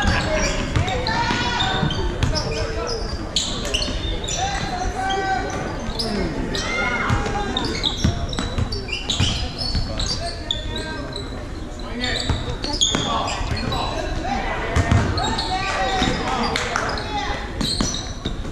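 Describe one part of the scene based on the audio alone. A basketball bounces repeatedly on a hard floor in a large echoing gym.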